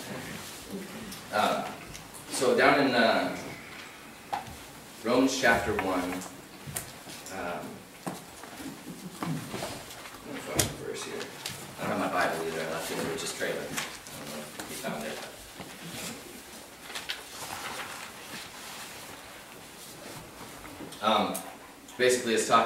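A man reads aloud calmly through a microphone in a room with a slight echo.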